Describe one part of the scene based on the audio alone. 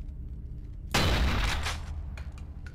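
A gunshot cracks once and rings out briefly.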